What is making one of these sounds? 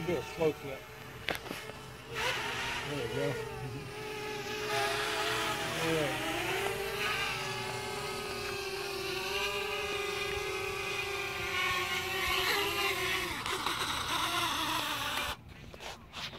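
A small drone's propellers whine steadily overhead, rising and falling in pitch, then stop.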